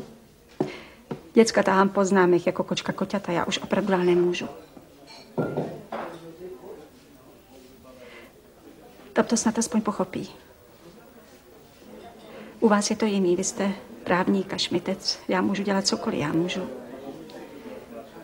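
A middle-aged woman speaks calmly and earnestly close by.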